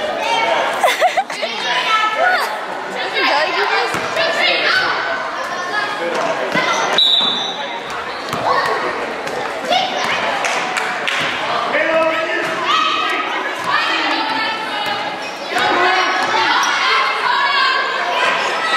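A crowd of children and adults shouts and cheers in a large echoing gym.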